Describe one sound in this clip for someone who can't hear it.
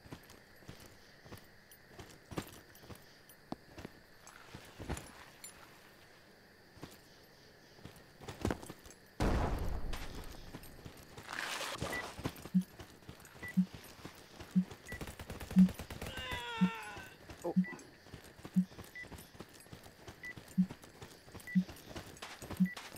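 Footsteps tap softly on hard ground.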